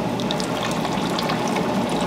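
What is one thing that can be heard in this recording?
A mixing paddle churns liquid in a steel vat.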